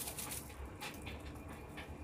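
A metal spoon scrapes against a bowl.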